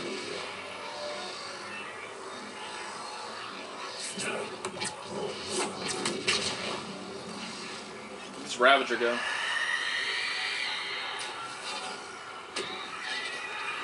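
Crackling energy bursts hiss and fizz.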